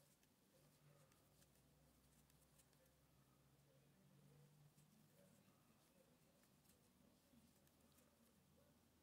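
A crochet hook clicks and rustles softly against thread.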